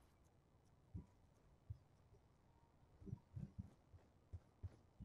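Footsteps tap lightly on a hard floor.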